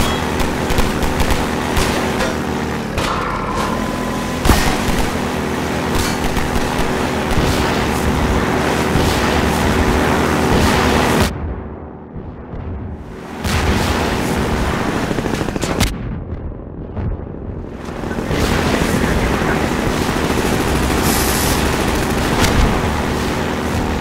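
An airboat engine roars steadily with a loud droning hum.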